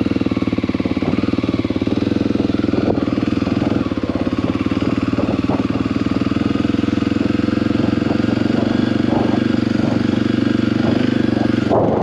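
Tyres crunch over loose dirt and gravel.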